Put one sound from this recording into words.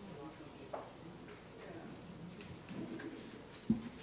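A boy speaks into a microphone over loudspeakers in a large hall.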